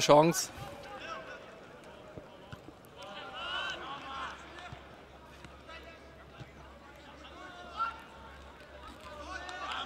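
A crowd chatters and murmurs in the stands, outdoors.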